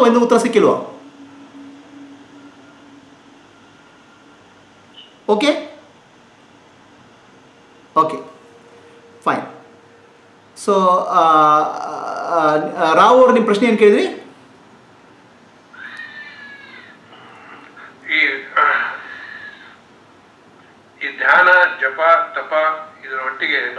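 A middle-aged man speaks calmly in short bursts with pauses, heard through an online call.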